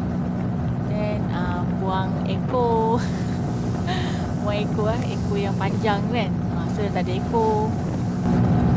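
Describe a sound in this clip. A man talks calmly through a helmet microphone.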